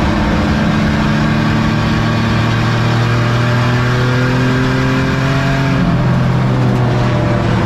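A race car engine roars loudly up close, its pitch slowly rising and then dropping as it shifts.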